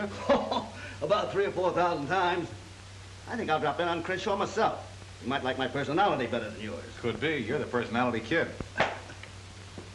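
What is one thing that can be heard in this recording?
A second man answers, close by.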